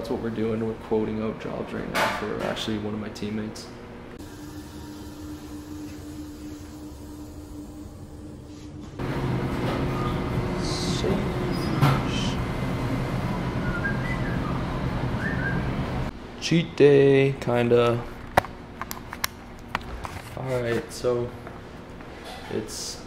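A young man talks casually, close to the microphone.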